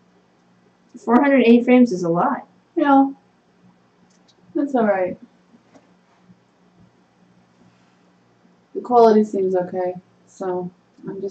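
A woman talks calmly into a nearby microphone, in short bursts with pauses.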